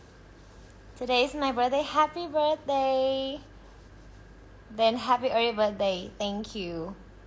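A young woman speaks playfully and close by.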